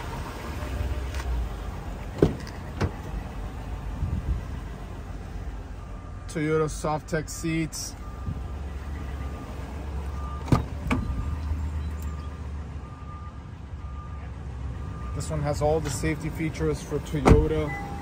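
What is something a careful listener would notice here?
A car door latch clicks and the door opens.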